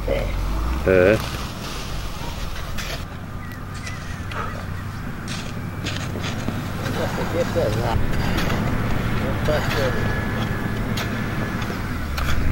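Hoes scrape and chop into dry soil.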